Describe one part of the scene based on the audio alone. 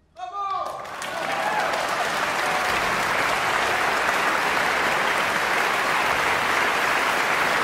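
An audience applauds loudly and steadily in a large hall.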